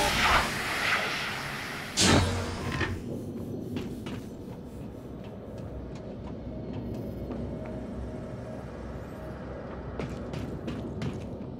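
Footsteps clank on a metal walkway.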